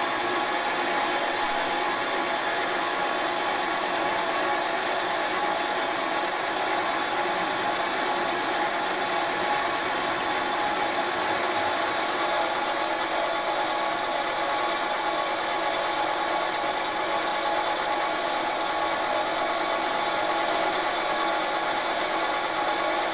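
A cutting tool scrapes and hisses against spinning metal.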